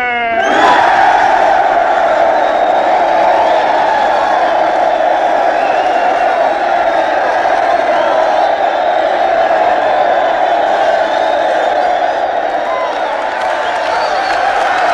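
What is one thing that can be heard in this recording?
A large crowd cheers and roars loudly.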